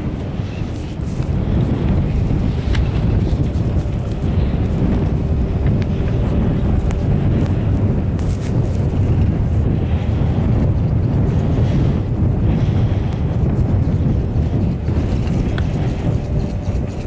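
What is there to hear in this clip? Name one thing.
A chairlift hums and creaks as it rides along the cable.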